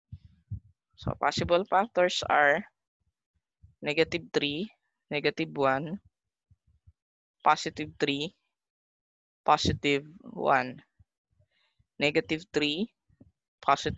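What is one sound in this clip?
A woman speaks calmly through a microphone, explaining in short phrases with pauses.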